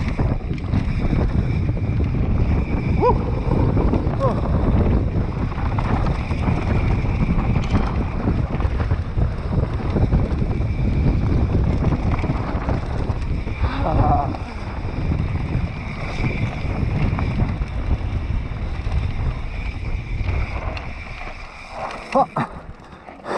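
Mountain bike tyres rumble and crunch over a dry dirt trail.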